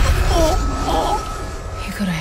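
An elderly woman cries out in distress, close by.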